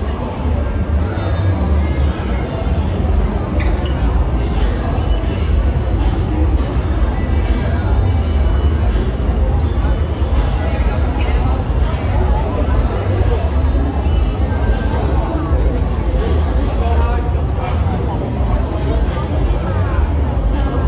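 A crowd of people chatters on a busy street outdoors.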